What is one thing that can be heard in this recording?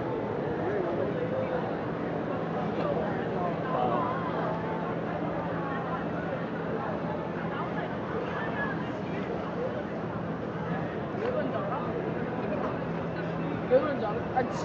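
A crowd of people chatter nearby outdoors on a busy street.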